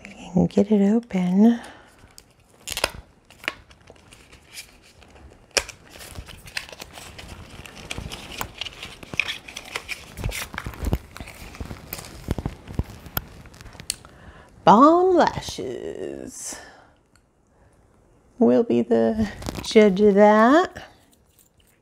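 A middle-aged woman talks close by, drawing out her words with animation.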